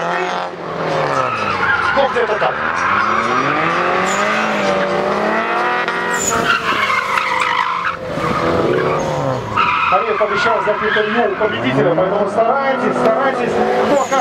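A car engine revs hard, rising and falling in pitch.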